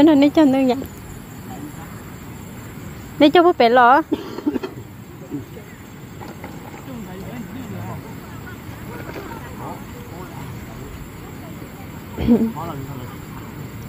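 A young girl calls out in a high voice close by.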